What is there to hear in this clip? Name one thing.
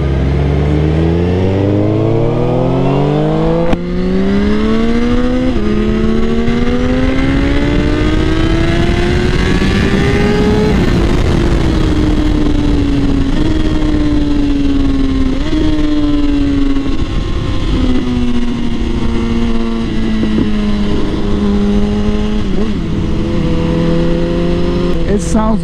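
A motorcycle engine revs hard and climbs through the gears, then drops and rises again.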